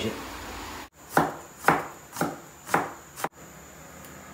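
A cleaver chops on a wooden board.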